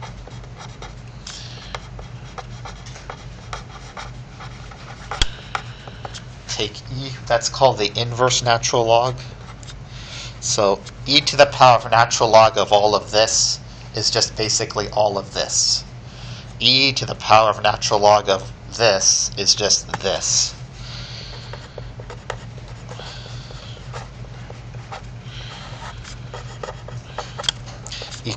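A pen scratches on paper as it writes.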